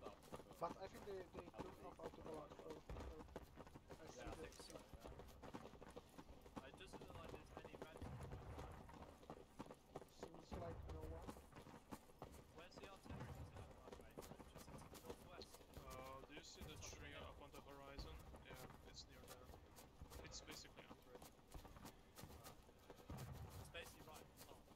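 Several people march with boots tramping on a dirt path.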